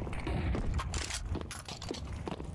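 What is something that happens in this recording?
A rifle fires a burst of sharp shots.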